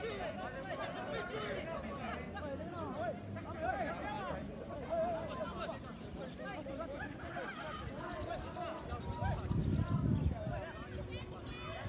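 Players call out to each other far off across an open field.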